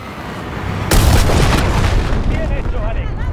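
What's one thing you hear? Debris rattles and clatters down after a blast.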